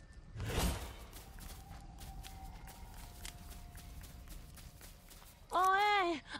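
Footsteps tap quickly on dirt.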